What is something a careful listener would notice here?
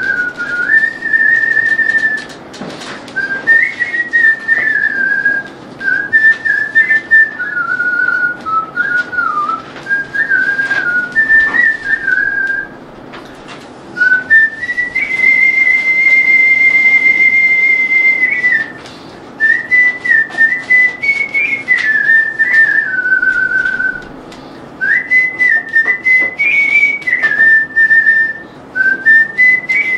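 A man whistles a tune.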